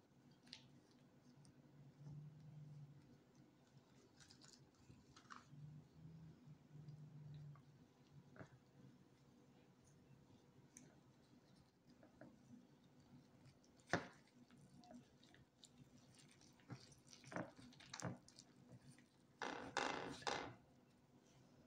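Gloved hands rustle and crinkle as a flatbread wrap is folded and rolled.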